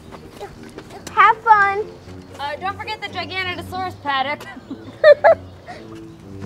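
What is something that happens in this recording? A young girl speaks excitedly nearby.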